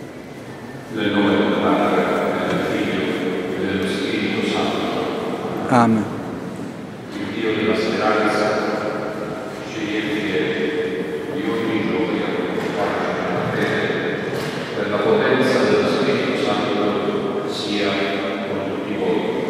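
A large congregation of men and women sings together in a large echoing hall.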